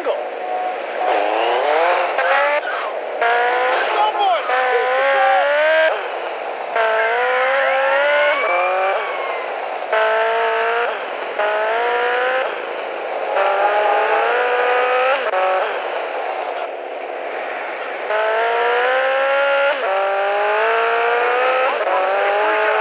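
A motorcycle engine revs up repeatedly as it shifts through gears and speeds along.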